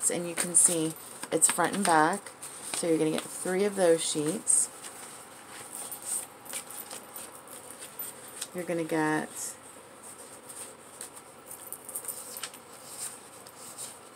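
Paper rustles and crinkles as it is handled close by.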